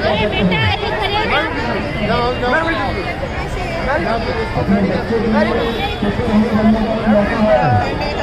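Children's voices ring out excitedly nearby.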